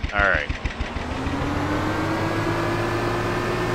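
A small boat motor hums steadily, slowly rising in pitch.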